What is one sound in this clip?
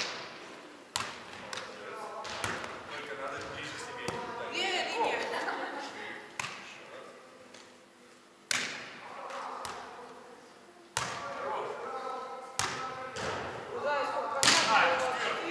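A volleyball is struck with hands and thumps in a large echoing hall.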